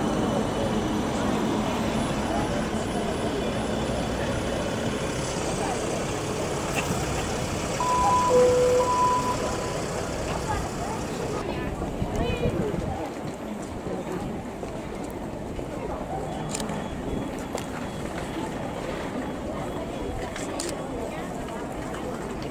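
A crowd chatters in the open air.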